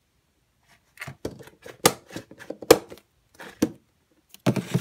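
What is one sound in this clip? A plastic box lid clatters and knocks.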